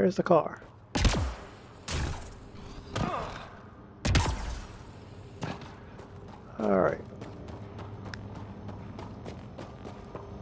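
Footsteps run over dirt.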